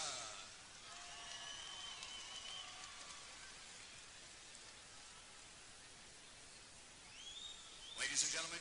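A spectator in a large crowd whistles loudly.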